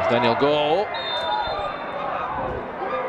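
A referee's whistle blows once in a short steady blast.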